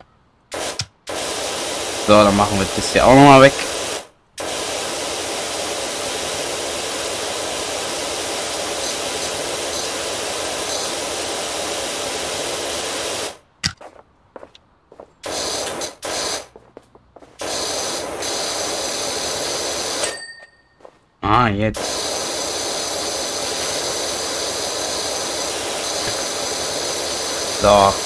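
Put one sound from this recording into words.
A pressure washer sprays a hissing jet of water against a surface.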